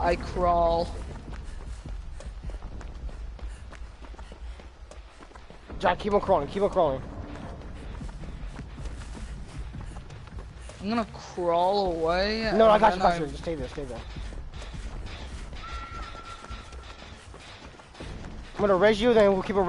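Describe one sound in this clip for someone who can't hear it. Footsteps run quickly through grass and leaves.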